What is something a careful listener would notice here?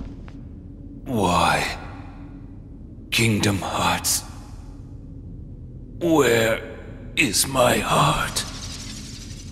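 A young man speaks in a strained, pained voice.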